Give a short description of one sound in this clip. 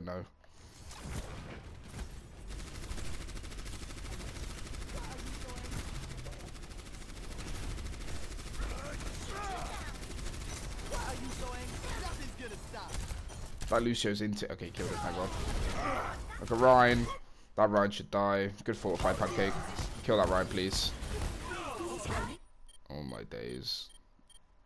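Weapons fire rapidly in a busy game battle.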